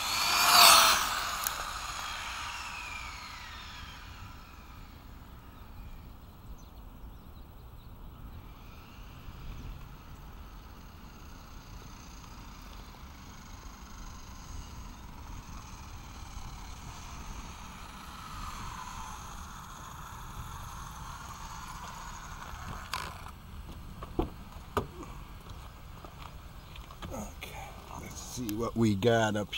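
A small remote-control car's electric motor whines, rising and falling in pitch as it speeds up and slows down.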